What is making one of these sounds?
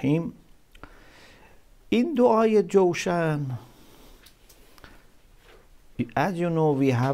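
A middle-aged man speaks slowly and with feeling into a microphone, close by.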